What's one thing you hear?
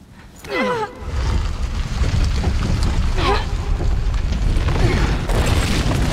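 A large creature growls with a deep, loud rumble.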